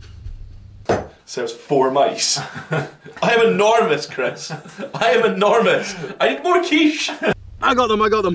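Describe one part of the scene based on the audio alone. Several men talk and laugh together close by.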